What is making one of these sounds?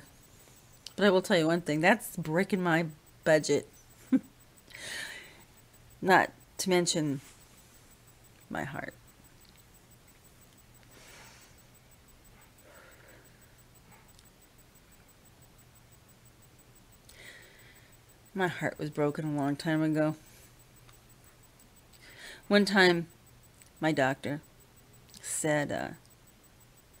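An older woman talks close to a microphone, in short bursts with pauses.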